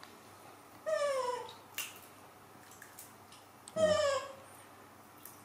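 A young monkey gives short high squeals.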